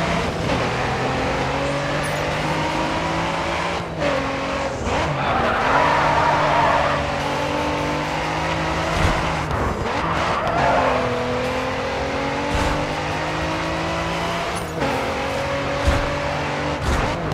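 A sports car engine revs hard and shifts through the gears.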